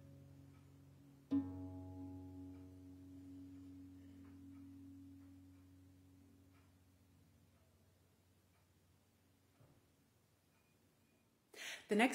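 A harp plays a soft chord that rings and slowly fades.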